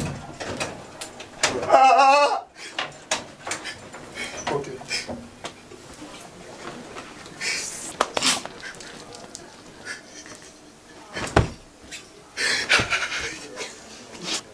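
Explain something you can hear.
A young man pleads loudly and cries out.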